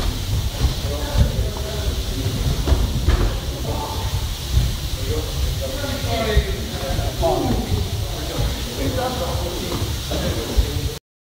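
A young man talks nearby over the training noise.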